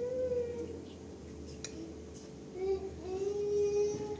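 A spoon clinks lightly against a plate.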